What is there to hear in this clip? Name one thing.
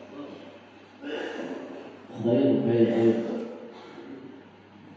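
Several men recite aloud together in a chanting voice.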